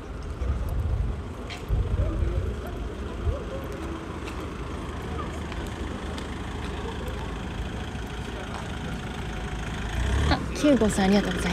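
A forklift engine hums nearby.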